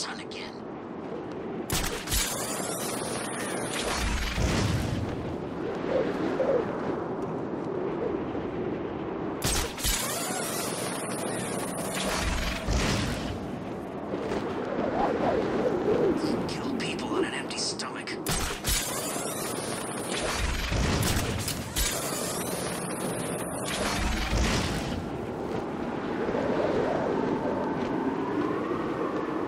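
Wind rushes loudly past, rising and falling in gusts.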